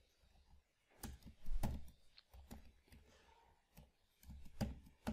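Keys clatter on a computer keyboard in short bursts.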